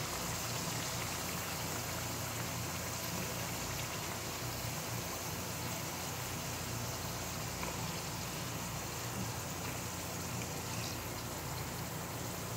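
Oil sizzles steadily in a frying pan.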